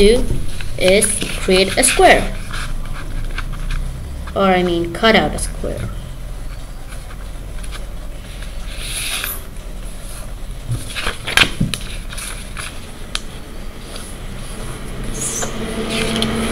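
A sheet of paper rustles as it is folded and creased.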